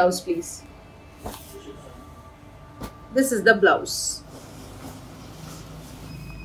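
Fabric rustles as cloth is draped and adjusted.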